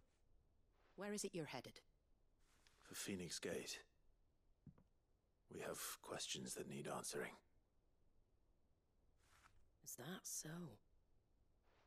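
A young man answers in a low, calm voice.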